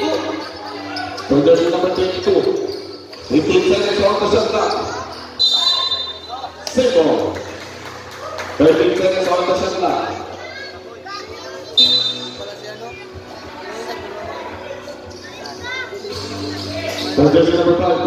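A crowd of spectators shouts and cheers loudly nearby.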